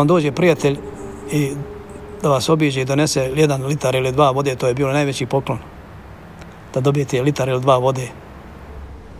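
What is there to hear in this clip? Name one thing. A middle-aged man speaks calmly and earnestly, close by.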